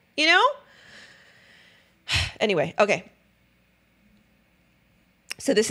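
A young woman speaks expressively into a close microphone.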